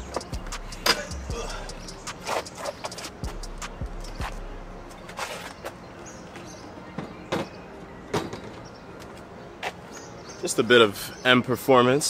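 Metal parts clink and knock under a car hood.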